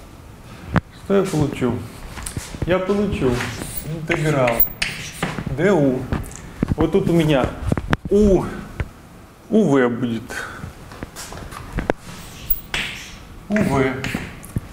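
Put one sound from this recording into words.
A young man speaks calmly, as if lecturing.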